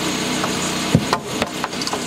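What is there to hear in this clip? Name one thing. A wooden board knocks against a wall.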